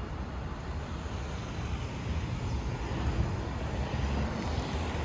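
Wind rumbles low and gusts steadily outdoors.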